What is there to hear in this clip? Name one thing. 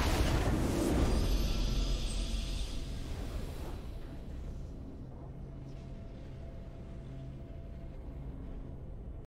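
A triumphant victory fanfare plays and slowly fades.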